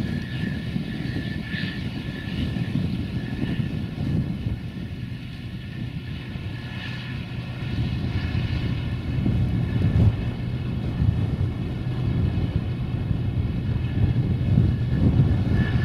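A combine harvester engine rumbles steadily nearby.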